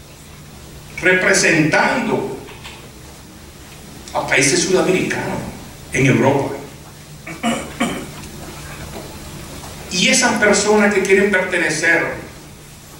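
A middle-aged man speaks into a microphone with feeling, in bursts, in an echoing hall.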